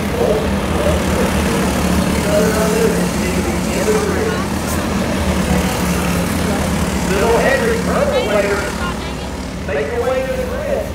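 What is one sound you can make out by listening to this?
Small racing car engines buzz and whine around a dirt track.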